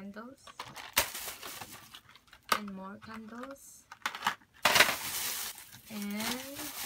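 Packaging rustles and crinkles in a woman's hands.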